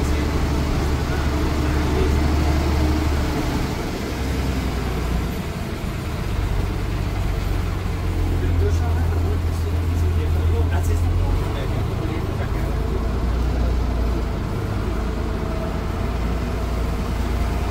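The bus body rattles and creaks as the bus rolls along.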